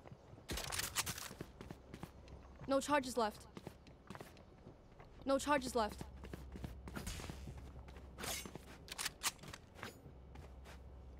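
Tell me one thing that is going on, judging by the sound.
Footsteps tap quickly across hard ground.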